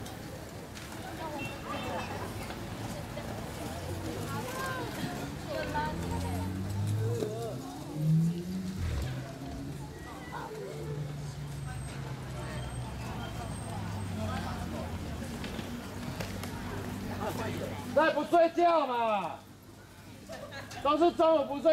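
Children's voices chatter and call out nearby.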